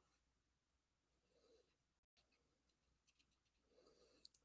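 Paper rustles and crinkles under fingers.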